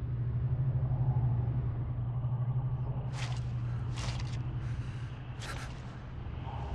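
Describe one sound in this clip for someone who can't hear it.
A hand scrapes through loose dirt.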